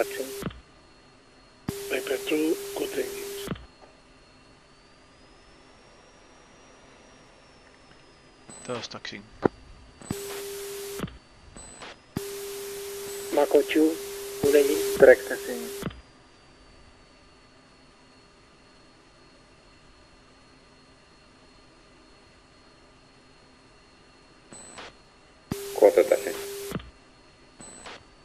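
A jet engine whines steadily.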